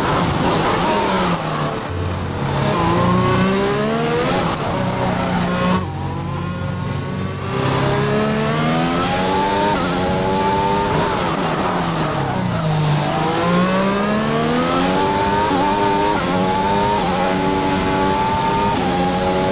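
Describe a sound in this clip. A racing car engine screams, rising and falling in pitch as it shifts gears and slows for corners.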